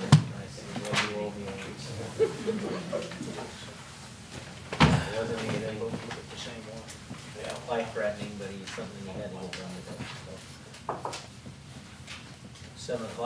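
Several men talk quietly nearby.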